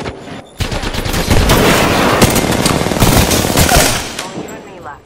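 Rapid gunfire blasts loudly in quick bursts.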